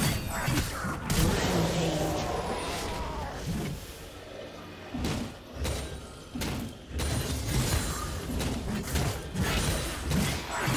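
Magic spells whoosh and blast in a fast fight.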